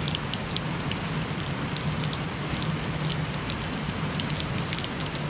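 Raindrops patter and tap close by.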